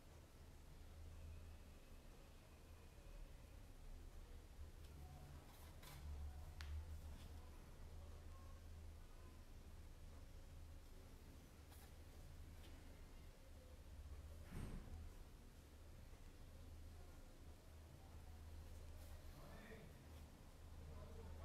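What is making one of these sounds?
A brush taps and dabs softly on paper.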